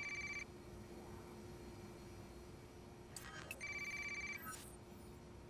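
A phone gives a short electronic beep.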